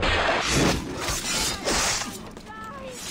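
Swords clash and strike in a fight at the start.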